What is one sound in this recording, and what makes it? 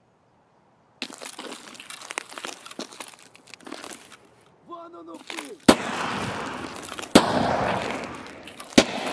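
Footsteps crunch on gravel and concrete.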